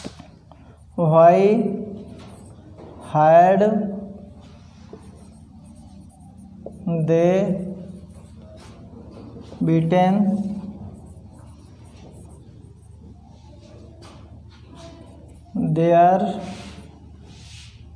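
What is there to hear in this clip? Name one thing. A man speaks slowly, drawing out single words, close by.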